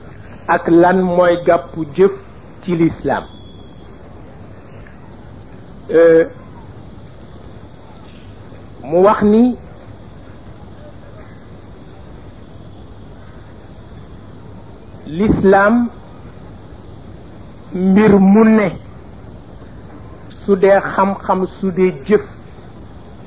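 An elderly man chants short phrases into a microphone, with pauses between them.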